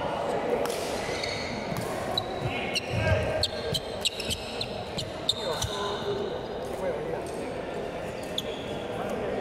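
Shuttlecocks are struck by rackets with sharp pops in a large echoing hall.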